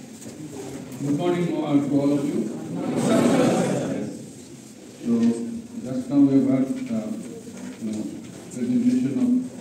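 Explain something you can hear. An elderly man speaks calmly through a microphone and loudspeakers.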